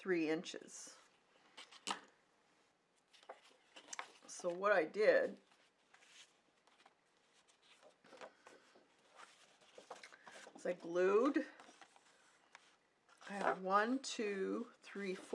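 Paper rustles and slides as sheets are handled.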